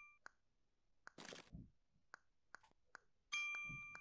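Keys click as someone types on a keyboard.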